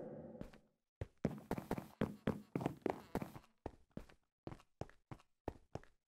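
Footsteps run in quick succession.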